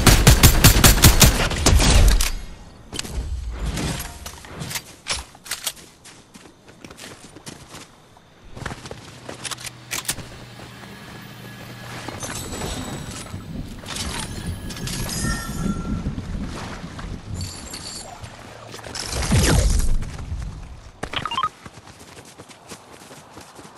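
Footsteps patter quickly on the ground in a game.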